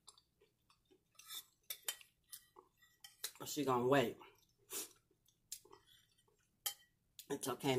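A woman chews and smacks food close to a microphone.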